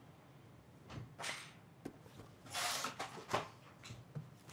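Papers rustle as a binder is set down and flipped.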